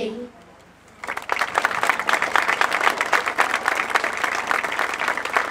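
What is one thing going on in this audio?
A crowd applauds and claps.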